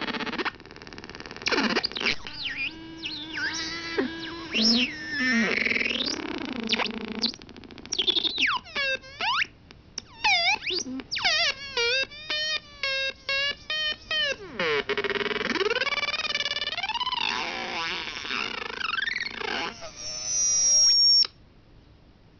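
An electronic tone warbles and sweeps up and down in pitch.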